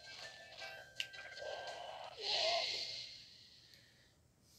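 Video game fighting sound effects clash and burst.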